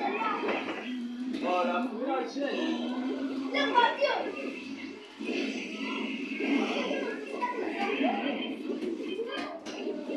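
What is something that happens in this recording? Fighting sound effects whoosh and thud from a television speaker.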